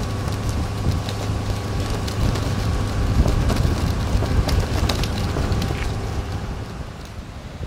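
An excavator engine rumbles in the distance.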